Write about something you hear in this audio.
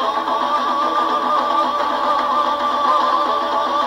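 A banjo is plucked in a lively pattern.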